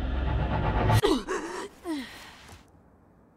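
A young woman gasps sharply.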